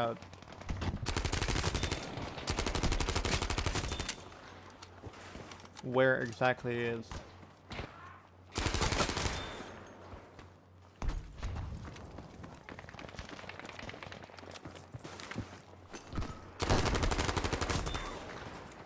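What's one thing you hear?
A submachine gun fires rapid bursts at close range.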